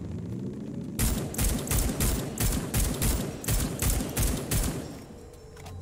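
A rifle fires a rapid series of loud shots.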